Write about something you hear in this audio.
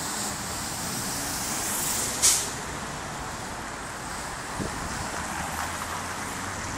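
Steady city traffic hums and roars outdoors.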